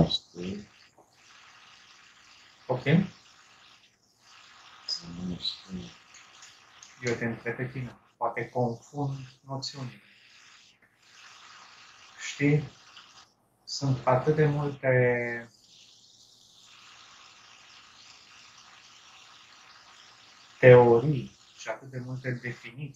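A young man talks calmly and with animation through a headset microphone on an online call.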